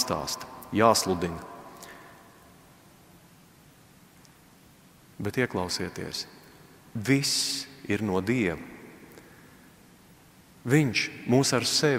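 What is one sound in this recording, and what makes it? A middle-aged man speaks calmly through a microphone, with pauses, in an echoing room.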